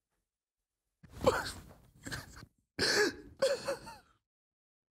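A young woman sobs and cries out in distress close by.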